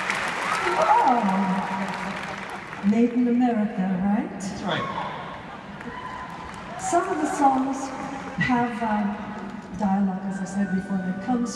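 A man sings through a microphone in a large echoing hall.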